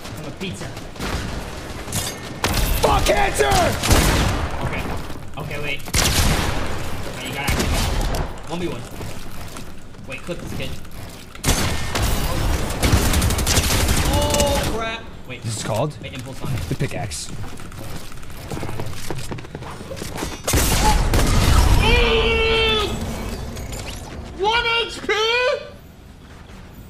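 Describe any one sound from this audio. Young men talk and shout excitedly through a microphone.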